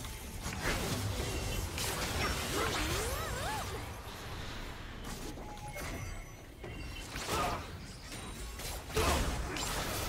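Fantasy battle sound effects whoosh, zap and crackle in quick bursts.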